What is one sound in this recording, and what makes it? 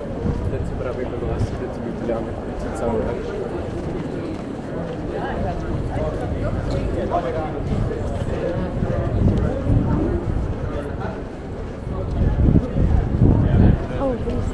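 A crowd of people murmurs and talks nearby, outdoors.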